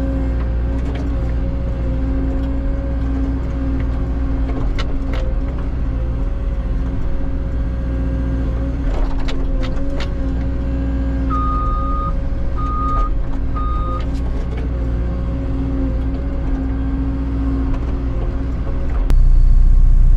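A hydraulic pump whines as the excavator arm digs.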